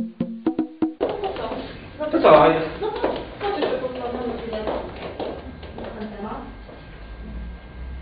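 A man speaks in a large room.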